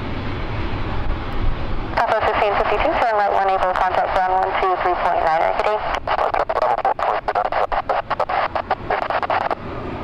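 A jet airliner taxis past, its engines whining.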